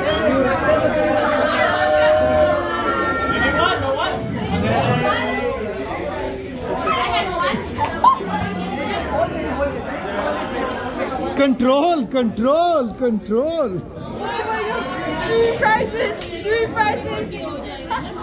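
A crowd of people chatters and laughs in a lively room.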